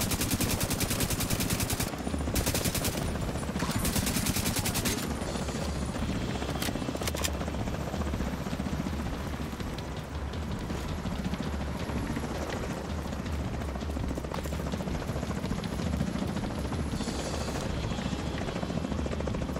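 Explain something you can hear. A helicopter's rotor thumps steadily overhead.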